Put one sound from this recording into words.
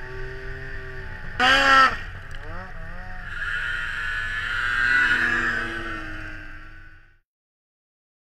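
A snowmobile engine roars close by and fades as the snowmobile speeds away.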